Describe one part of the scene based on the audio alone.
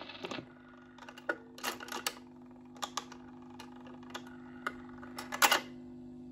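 A record player's tonearm clicks and knocks as it lifts and moves.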